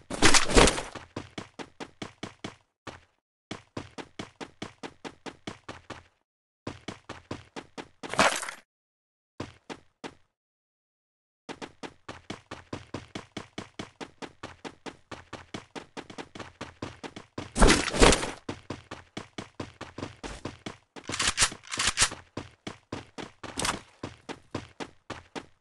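Quick footsteps thud on a wooden floor.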